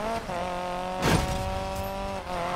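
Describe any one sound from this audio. A car crashes through a barrier with a loud bang.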